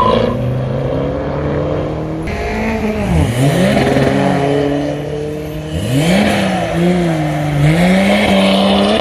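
A car engine idles with a deep, rumbling exhaust close by.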